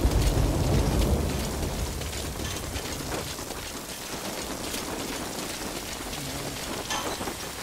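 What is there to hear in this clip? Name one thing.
Footsteps crunch softly on gravel and pavement.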